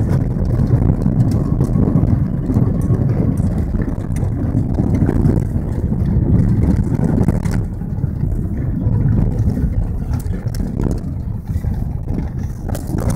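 Tyres crunch and rattle over a rough gravel road.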